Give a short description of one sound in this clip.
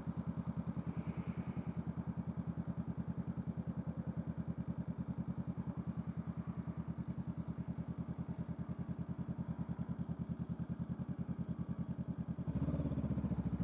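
A parallel-twin cruiser motorcycle idles with a steady pulsing beat.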